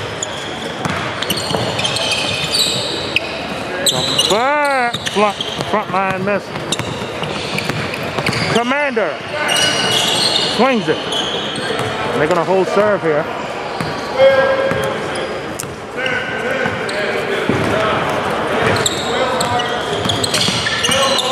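Players and onlookers shout and talk in a large echoing gym.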